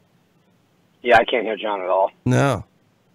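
A second man answers briefly over an online call, sounding thinner.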